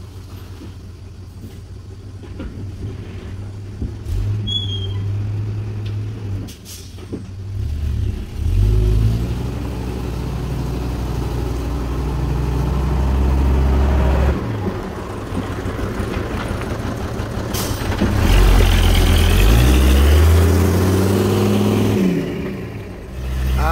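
A heavy truck's diesel engine rumbles and revs close by.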